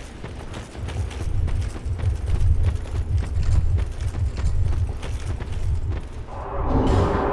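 Heavy armoured footsteps crunch quickly on gravel.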